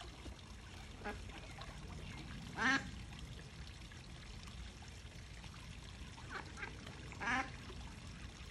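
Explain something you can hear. A duck quacks loudly a few times.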